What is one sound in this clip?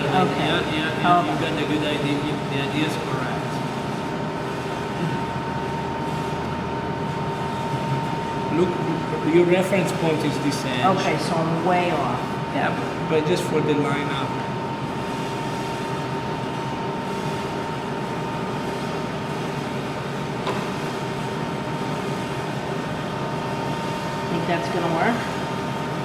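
A meat slicer whirs steadily as it cuts.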